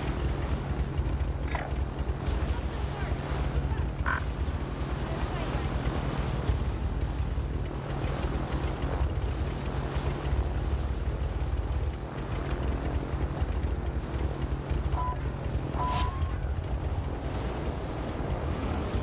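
A propeller plane's engine drones steadily and low.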